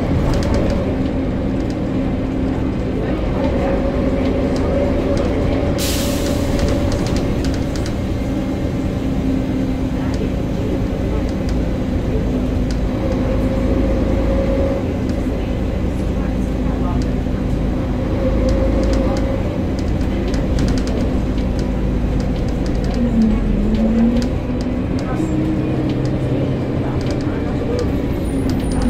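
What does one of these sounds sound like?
A bus engine drones steadily from inside the bus.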